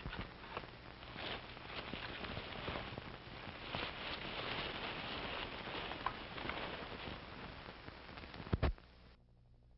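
Branches and leaves rustle and snap as people push through dense brush.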